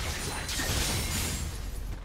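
A fiery blast roars in a video game.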